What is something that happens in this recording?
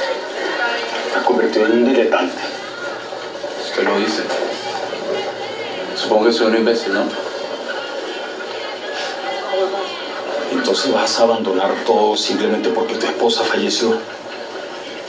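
Two men talk calmly, heard through a loudspeaker.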